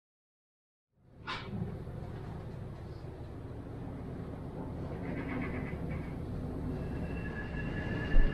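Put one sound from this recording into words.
A ship's engine rumbles low and steady.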